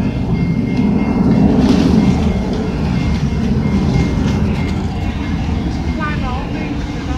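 Wind blows outdoors, rumbling against the microphone.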